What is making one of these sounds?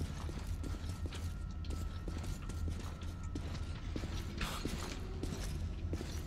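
Footsteps thud on a concrete floor.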